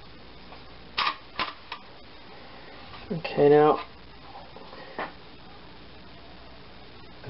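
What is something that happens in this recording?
A mug clinks against a metal tray.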